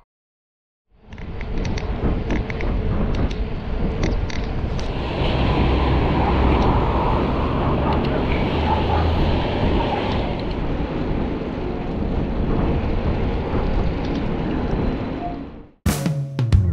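Wind buffets loudly and steadily.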